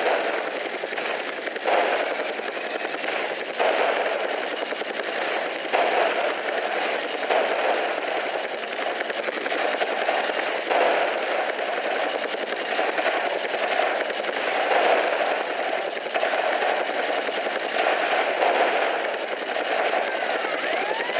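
A helicopter's rotor whirs steadily throughout.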